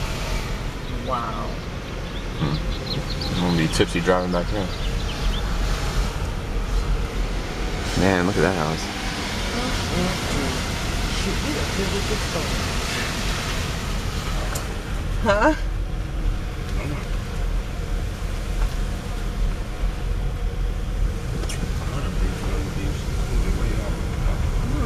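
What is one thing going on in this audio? A car engine rumbles steadily from inside the moving car.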